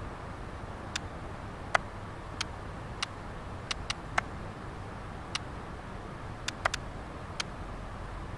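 Video game menu clicks tick softly.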